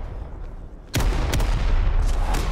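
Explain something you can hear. A rifle fires loud, sharp shots in quick succession.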